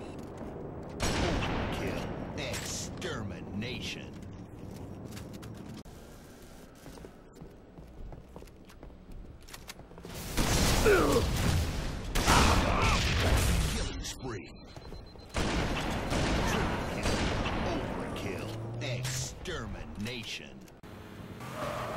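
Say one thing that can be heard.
Gunfire and explosions from a video game crackle and boom.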